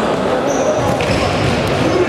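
A ball is kicked with a thud.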